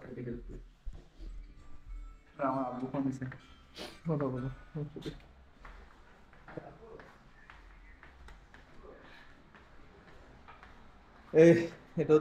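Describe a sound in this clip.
Footsteps walk across a wooden floor.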